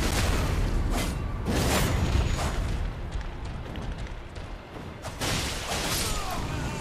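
Swishing whooshes of swung weapons sweep past.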